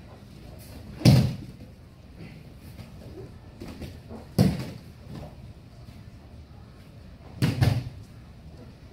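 Bodies thud heavily onto a padded mat.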